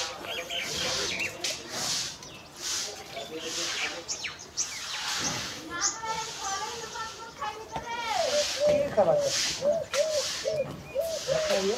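A cow munches feed from a tub.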